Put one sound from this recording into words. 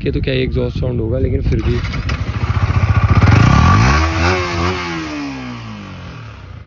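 A motorcycle engine revs up loudly and then slowly winds back down.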